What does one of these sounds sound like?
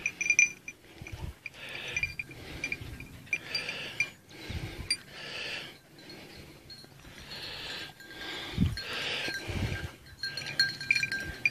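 A dog tugs and tears at a carcass in rustling grass.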